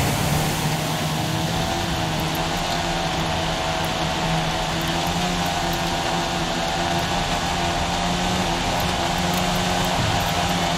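Tyres crunch and slide over a muddy dirt track.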